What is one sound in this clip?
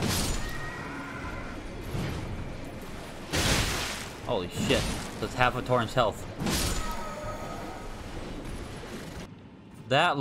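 Blades swing and strike with heavy, clanging impacts.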